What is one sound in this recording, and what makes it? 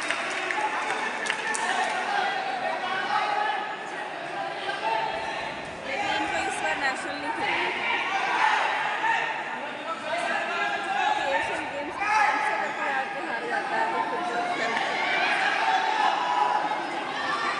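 A man calls out loudly in a large echoing hall.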